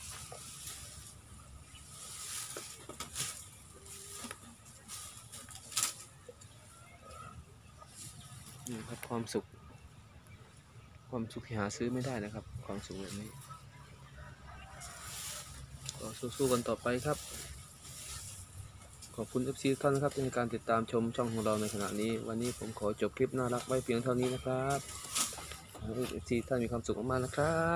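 A baby elephant rustles and crunches through dry grass.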